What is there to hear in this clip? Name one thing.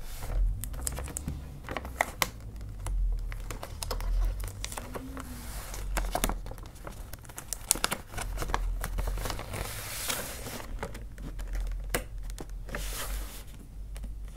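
Wrapping paper crinkles and rustles as it is folded.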